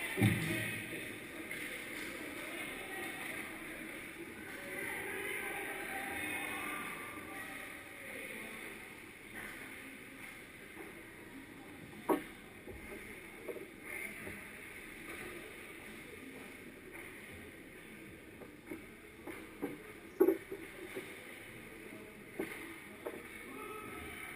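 Skates scrape across ice in a large echoing rink.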